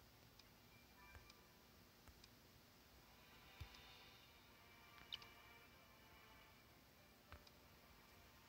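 Short electronic chimes and clicks sound now and then from a game.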